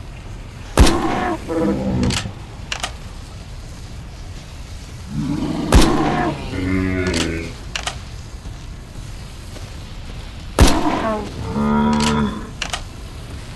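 A large creature roars and growls.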